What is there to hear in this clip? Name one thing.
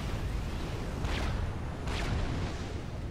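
Laser weapons zap and fire.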